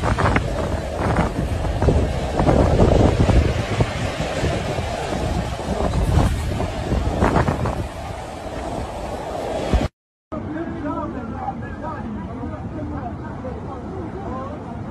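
Floodwater rushes and roars outdoors.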